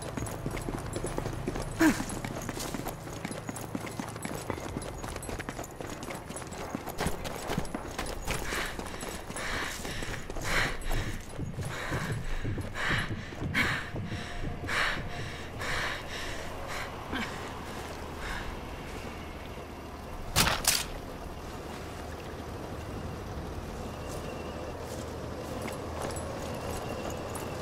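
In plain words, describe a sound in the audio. Footsteps run over ground and gravel.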